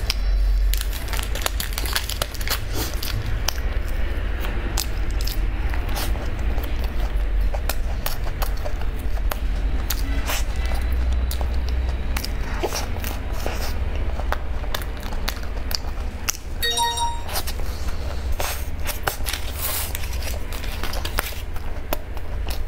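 Soft food squishes and crackles as a young woman's fingers tear a pastry apart.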